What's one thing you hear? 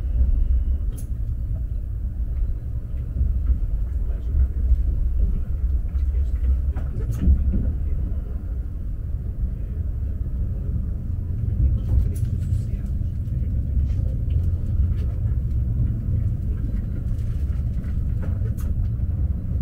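Wheels click and clatter over rail joints.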